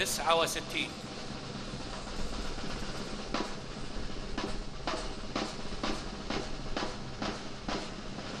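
Many boots stamp rhythmically on pavement as a crowd marches.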